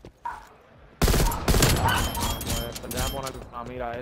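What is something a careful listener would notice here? Rapid gunshots ring out.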